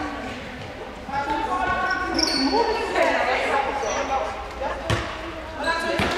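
Young women shout and call out across a large echoing gym.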